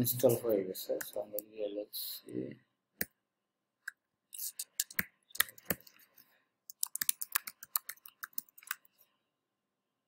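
Keys click quickly on a keyboard.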